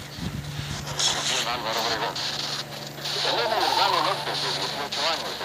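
A person speaks close to a microphone.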